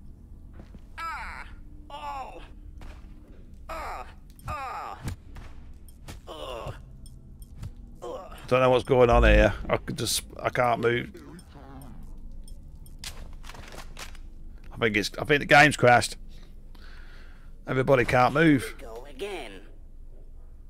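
An elderly man talks with animation into a close microphone.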